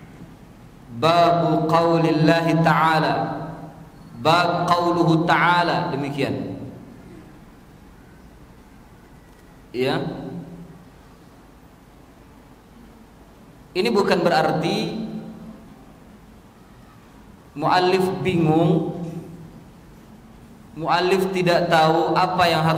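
A middle-aged man speaks calmly into a microphone in bursts, with pauses between phrases.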